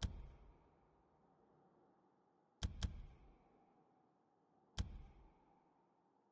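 Menu selection clicks sound with short echoing tails.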